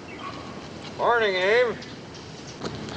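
A woman calls out a greeting from a distance.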